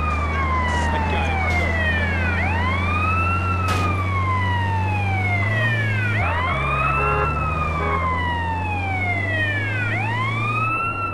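A siren wails, rising and falling in long sweeps.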